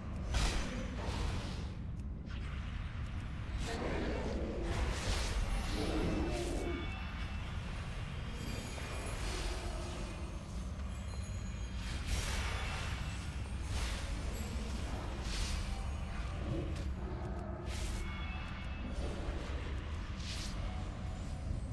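Blows and magic blasts strike again and again.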